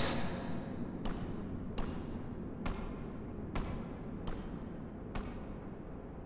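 Footsteps echo slowly on a stone floor.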